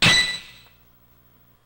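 A video game plays a short, bright electronic chime.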